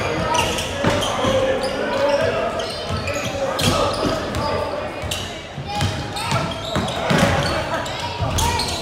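Sneakers squeak on a hardwood court in a large echoing hall.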